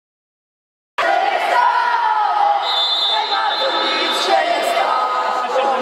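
Children chatter and shout in a large echoing hall.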